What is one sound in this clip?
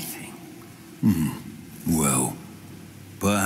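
An elderly man speaks curtly.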